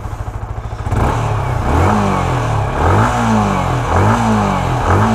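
A motorcycle engine revs up and down repeatedly.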